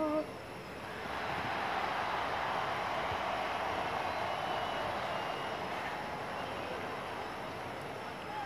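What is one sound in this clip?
A crowd cheers in a large arena.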